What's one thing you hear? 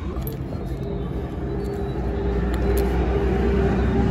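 A small metal part clinks as it is pulled from the jack.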